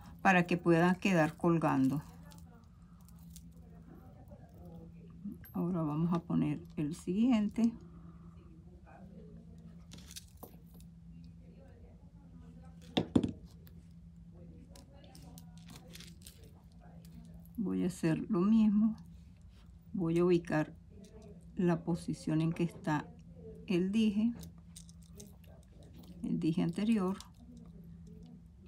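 A small metal chain clinks softly against pliers.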